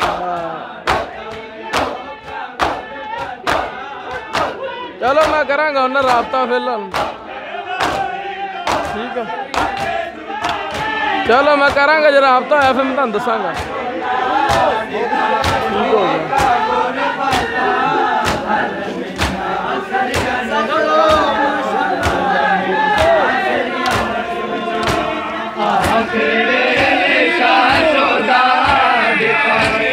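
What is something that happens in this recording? A crowd of men chants loudly nearby.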